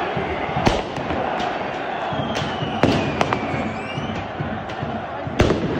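A large crowd roars and chants loudly in a stadium.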